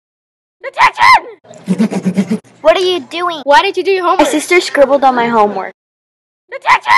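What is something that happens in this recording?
A young woman shouts angrily, close to the microphone.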